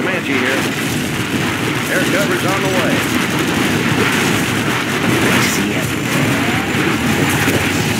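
Explosions boom in a battle.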